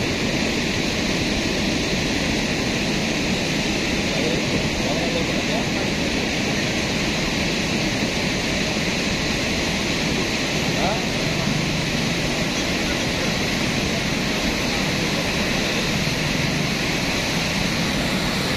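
Muddy floodwater rushes and roars steadily.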